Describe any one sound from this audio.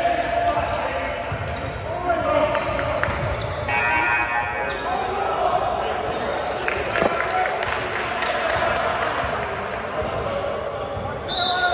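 Men call out to each other across the court.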